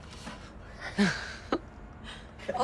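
A young man laughs softly.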